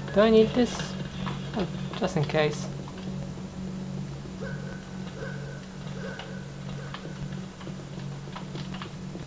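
Game sounds play from small desktop speakers, with a steady low hum.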